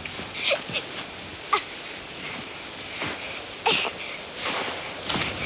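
A young child squeals and shouts excitedly close by.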